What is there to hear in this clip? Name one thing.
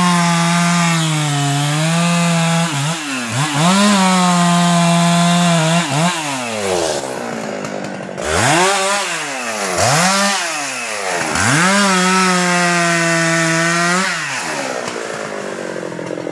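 A chainsaw engine idles and revs up and down.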